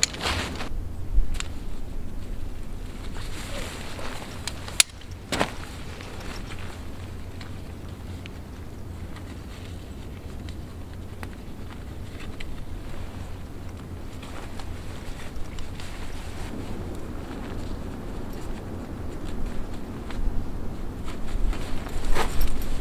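Nylon fabric rustles and crinkles as it is handled.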